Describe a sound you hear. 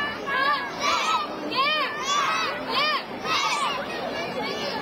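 A group of young children shout sharply in unison.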